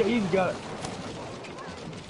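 An explosion booms nearby.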